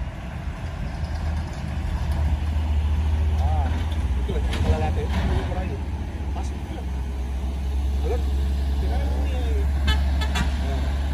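A heavy truck engine rumbles loudly as it climbs a winding road.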